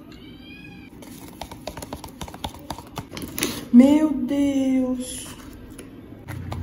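A spoon stirs and scrapes inside a plastic cup.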